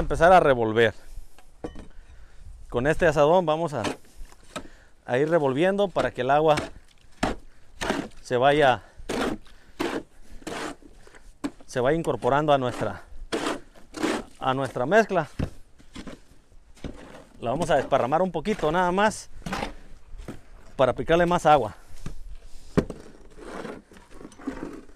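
A hoe scrapes and slaps through wet concrete.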